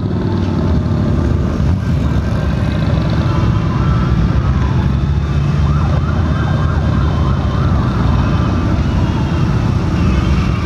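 Wind buffets loudly past a moving rider.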